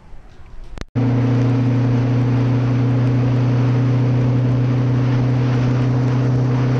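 A vehicle engine drones steadily while driving along a road.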